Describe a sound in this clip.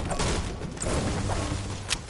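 A pickaxe strikes wood with hard knocks.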